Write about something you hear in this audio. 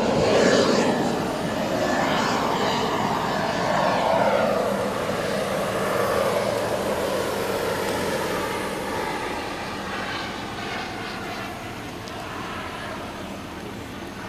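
A jet engine roars loudly overhead and slowly fades into the distance.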